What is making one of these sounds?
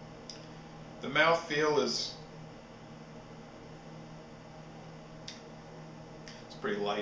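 A man speaks calmly close to a microphone.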